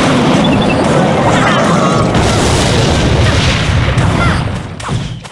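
Video game battle effects clash and thud steadily.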